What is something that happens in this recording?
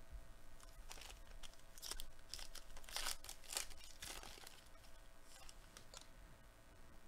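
A foil card wrapper crinkles and tears as hands open it.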